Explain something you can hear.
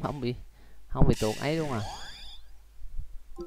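A shrill electronic creature cry rings out.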